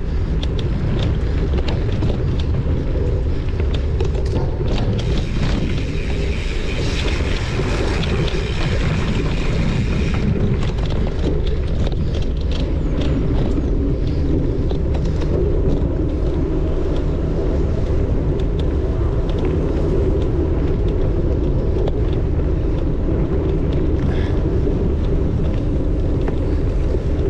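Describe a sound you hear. A motorcycle engine drones steadily while riding along a forest trail.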